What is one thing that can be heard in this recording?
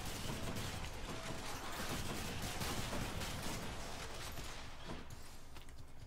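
Magic blasts crackle and whoosh in a fight.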